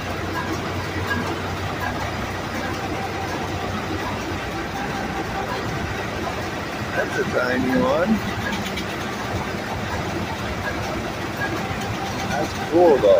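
An old engine chugs steadily nearby.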